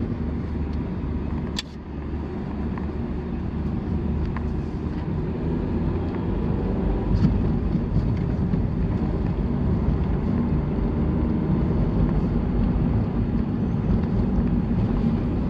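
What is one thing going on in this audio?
A car drives along a paved road, heard from inside as a low drone and tyre rumble.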